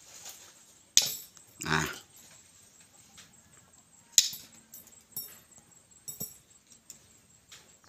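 Wire cutters snip through thin metal rods with sharp clicks.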